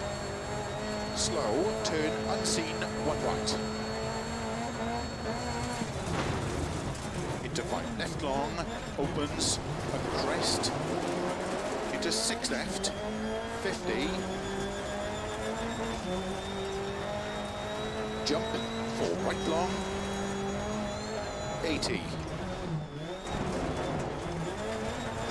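A rally car engine roars and revs up and down as the car speeds along.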